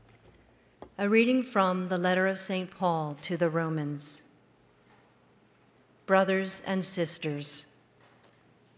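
A woman speaks calmly into a microphone in a reverberant hall.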